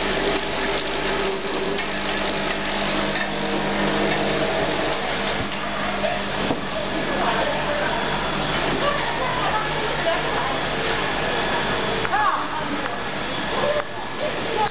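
Machinery hums and whirs steadily.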